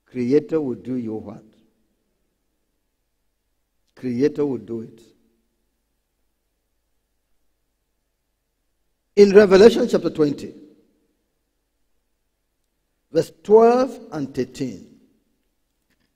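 A man speaks calmly through a microphone in short phrases with long pauses.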